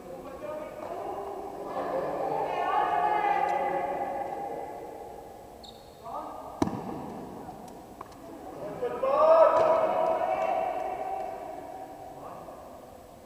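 Young people call out and cheer in an echoing hall.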